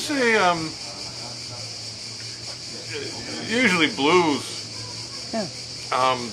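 A middle-aged man speaks thoughtfully and hesitantly, close by.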